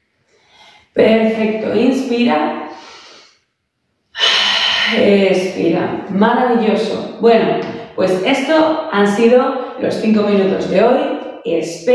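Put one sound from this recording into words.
A young woman speaks calmly and warmly, close by.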